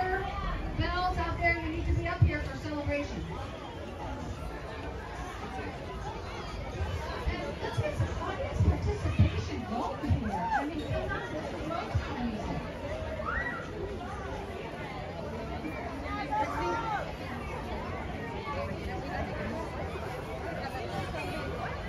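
A crowd of children and adults chatters nearby outdoors.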